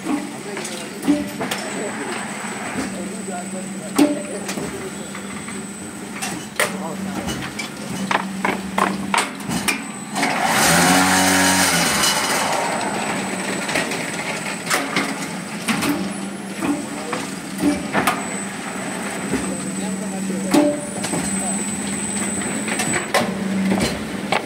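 Metal parts of a machine clank and knock now and then.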